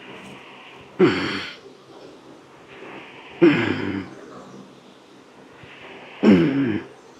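A young man grunts and exhales loudly with effort, close by.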